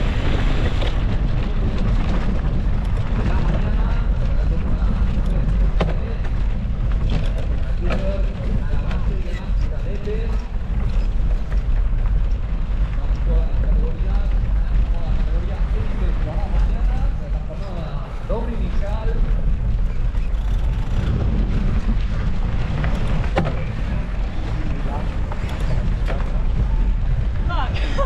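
Bicycle tyres crunch and rattle over a rough dirt trail.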